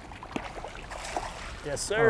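Water splashes as a fish thrashes at the surface.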